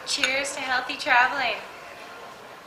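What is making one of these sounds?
Two young women call out a cheerful toast together, close by.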